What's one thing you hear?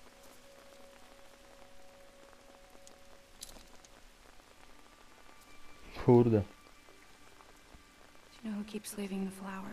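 Rain falls lightly on an umbrella.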